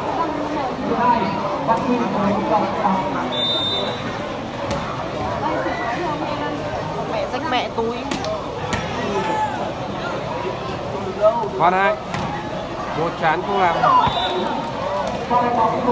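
A ball is struck by players' hands with sharp slaps.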